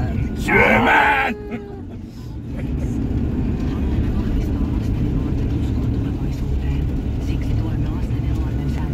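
A van engine rumbles steadily.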